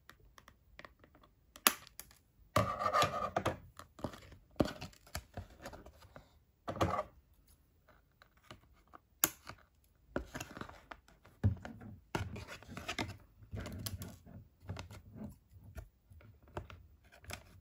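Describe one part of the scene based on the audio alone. Cardboard rustles and crinkles as it is handled.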